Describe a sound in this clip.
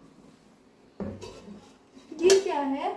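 A metal lid clanks on a pan.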